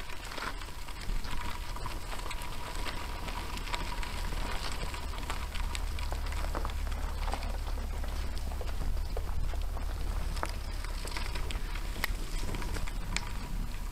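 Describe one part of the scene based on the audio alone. Bicycle tyres crunch and rattle over gravel.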